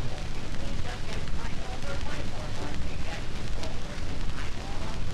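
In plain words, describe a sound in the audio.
An old gramophone plays crackly dance music through its horn.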